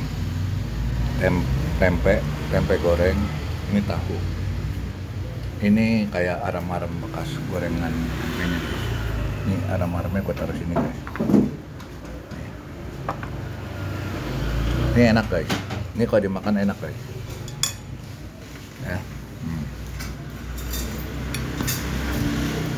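A spoon scrapes and clinks against a plate.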